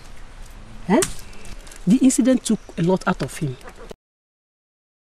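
A middle-aged woman speaks nearby.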